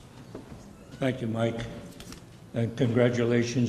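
Another elderly man speaks into a microphone.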